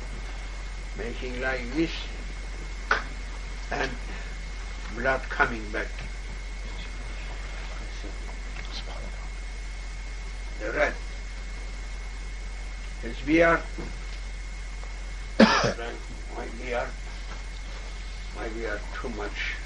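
An elderly man speaks calmly and slowly, in short phrases with pauses.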